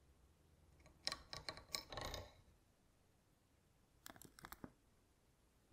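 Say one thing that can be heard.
A metal shaft scrapes and rattles as it slides into a housing.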